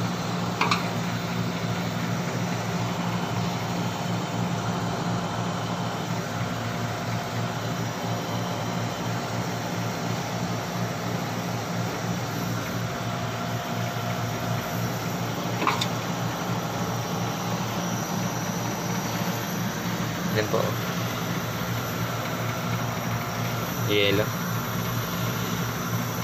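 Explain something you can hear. An air conditioning compressor hums steadily with a low drone.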